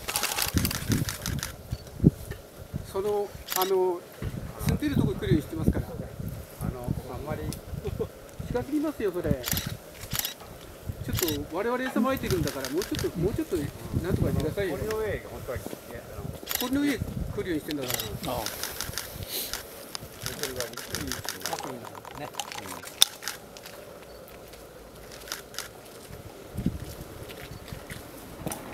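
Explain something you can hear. A small bird pecks and rustles in dry leaves close by.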